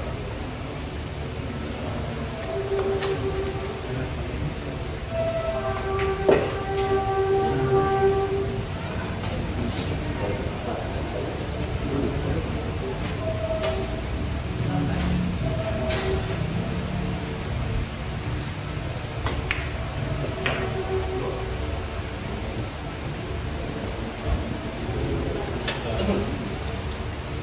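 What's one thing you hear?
A crowd of onlookers murmurs quietly in the background.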